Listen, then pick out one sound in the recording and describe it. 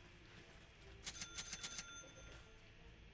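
Game interface clicks chime briefly.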